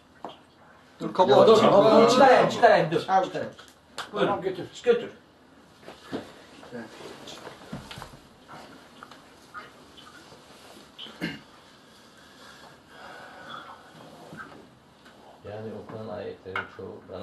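A man speaks nearby.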